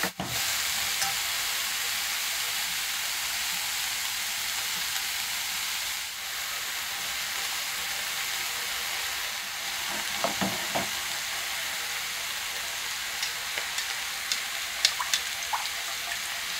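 Food sizzles steadily in a hot frying pan.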